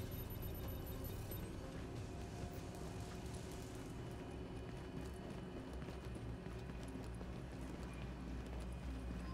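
Footsteps run on a concrete floor.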